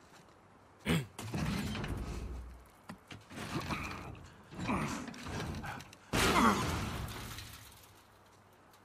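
A heavy metal door scrapes and grinds as it is pulled open.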